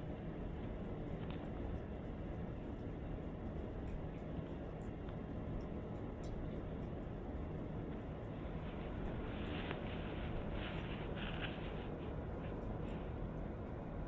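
Kittens scuffle and paw at each other.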